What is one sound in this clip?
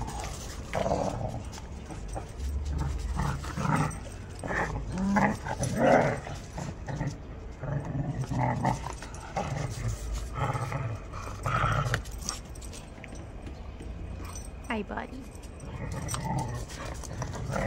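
Dogs growl and snarl playfully while tugging on a toy.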